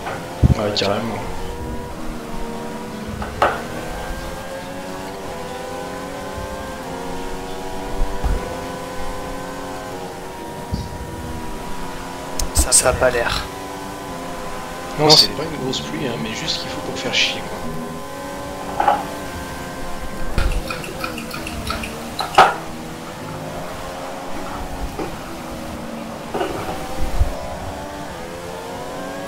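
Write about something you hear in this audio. Racing car engines whine loudly, rising and falling in pitch as the cars speed up and brake.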